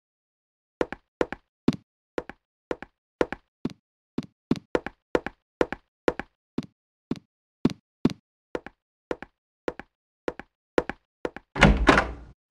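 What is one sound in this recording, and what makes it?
Footsteps walk steadily on a wooden floor.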